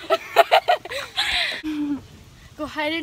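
Teenage girls laugh loudly close by.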